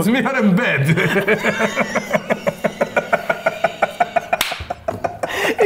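A second man chuckles close by.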